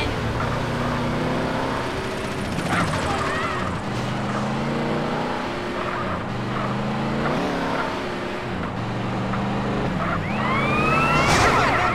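Car tyres screech while skidding.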